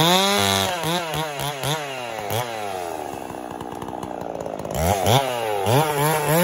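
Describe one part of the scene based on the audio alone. A chainsaw engine revs up and down repeatedly.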